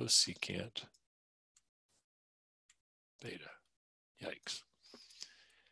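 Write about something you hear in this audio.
A woman speaks calmly through a microphone, in short phrases with pauses.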